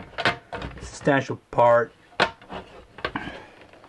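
A plastic window frame clicks shut.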